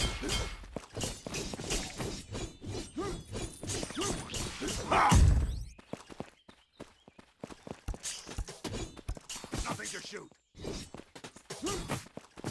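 Magic bolts whoosh and burst in quick bursts.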